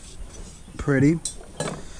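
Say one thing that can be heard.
A metal pitcher clinks as it is set down among other items.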